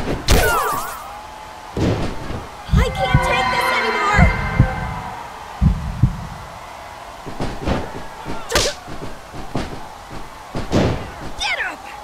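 Heavy punches and body slams thud again and again.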